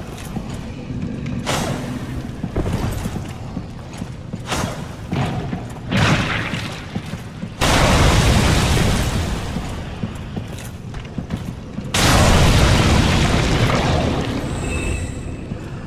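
A sword swishes and strikes repeatedly.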